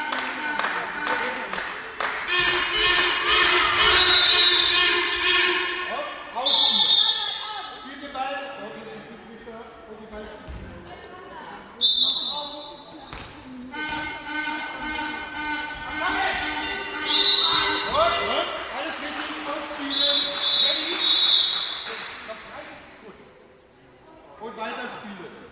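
Sneakers squeak sharply on a floor in a large echoing hall.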